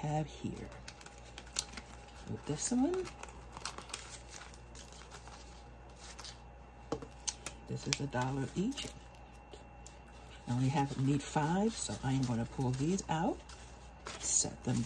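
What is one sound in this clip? Paper banknotes rustle and crinkle as hands flip through them.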